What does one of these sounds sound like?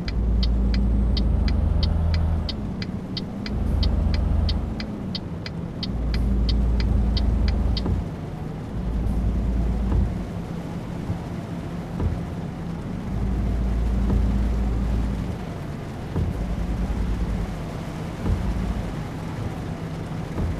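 A truck engine rumbles steadily, rising and falling as it drives.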